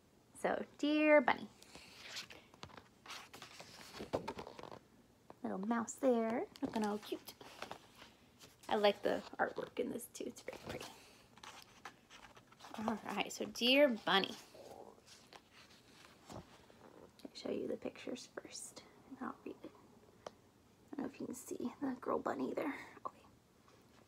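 A young woman reads a story aloud expressively, close by.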